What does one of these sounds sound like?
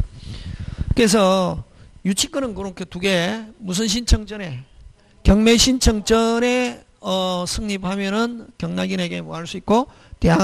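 A middle-aged man lectures calmly into a handheld microphone, heard through a loudspeaker.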